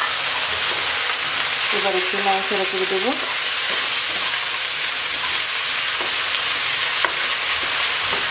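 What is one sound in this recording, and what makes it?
A wooden spoon scrapes and knocks against a pan as vegetables are stirred.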